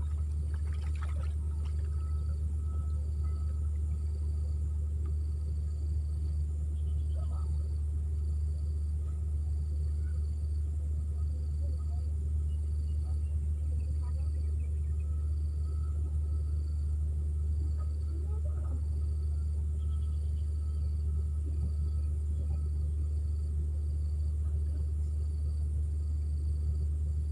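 Water ripples and laps gently as a man wades through a pond.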